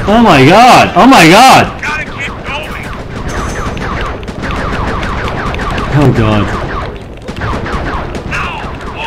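A cannon fires shots in rapid bursts.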